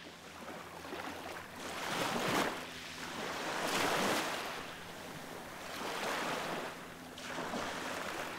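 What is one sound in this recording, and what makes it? Waves break and wash over a pebble beach.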